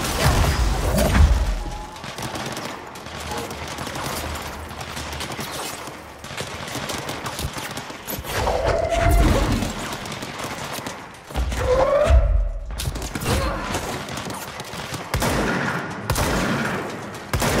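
Explosions boom and debris crashes.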